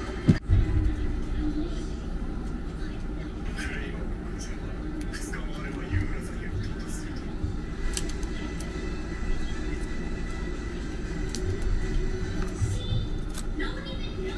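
Small plastic wrappers crinkle and rustle in fingers.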